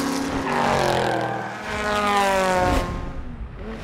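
A racing car engine roars and revs.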